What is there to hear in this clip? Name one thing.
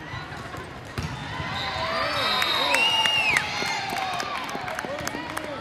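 Young women players shout to each other during a rally.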